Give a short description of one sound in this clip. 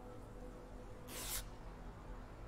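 A short rustling burst sounds as a bandage is used.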